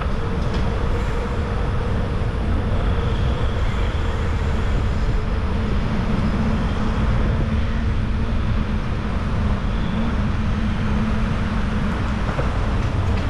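Wind rushes and buffets loudly past.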